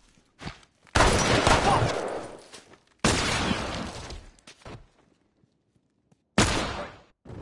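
Loud gunshots ring out and echo.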